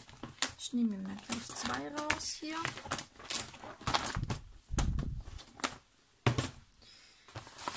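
Plastic binder sleeves rustle and crinkle as they are handled.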